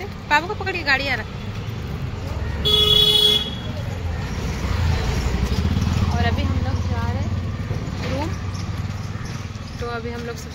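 A young woman speaks close by, in a lively way.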